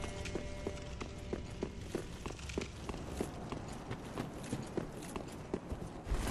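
Armoured footsteps clank quickly and steadily over stone.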